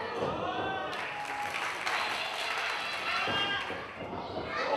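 An indoor audience claps and cheers.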